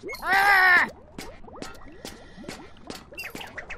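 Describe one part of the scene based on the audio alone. Many quick impacts crackle and pop in rapid succession.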